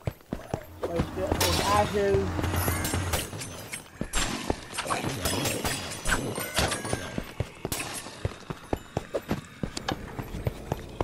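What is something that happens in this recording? Weapon blows and hits clash in a fight.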